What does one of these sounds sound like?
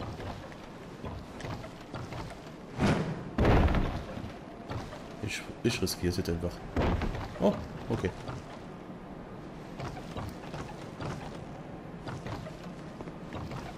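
Heavy footsteps thud on wooden planks.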